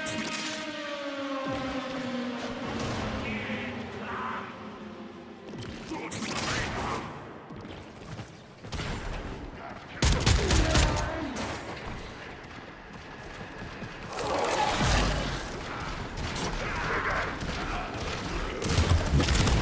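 Crackling energy blasts boom in sudden bursts.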